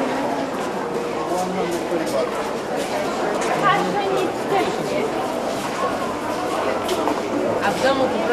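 A crowd of people chatter in a busy, echoing passage.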